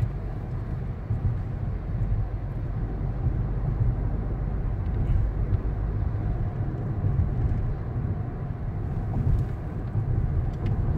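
A car engine hums steadily from inside as the car drives along a road.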